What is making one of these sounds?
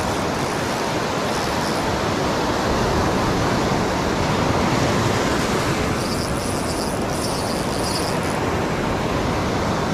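Surf rushes and foams close by in a steady roar.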